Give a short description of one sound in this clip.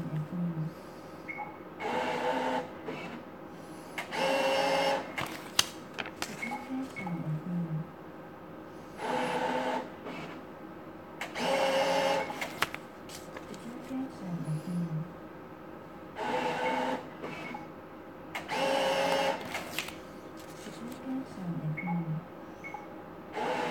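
A gaming machine plays loud electronic jingles in repeating bursts.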